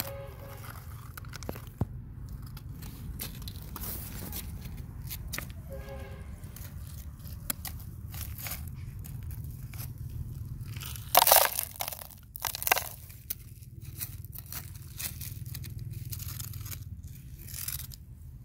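Small feet in sandals scuff and shuffle on grass and pebbles.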